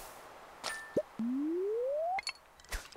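A fishing line whooshes out as it is cast, rising in pitch.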